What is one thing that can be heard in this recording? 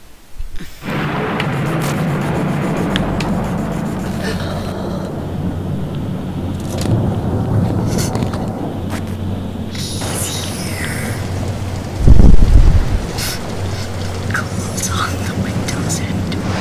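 A young man talks quietly into a close microphone.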